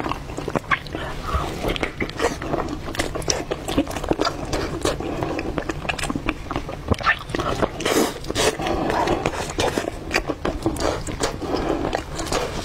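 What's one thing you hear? A young woman chews and smacks loudly, close to a microphone.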